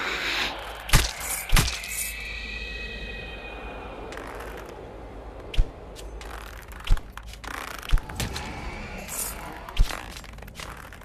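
A bowstring twangs sharply as an arrow is shot.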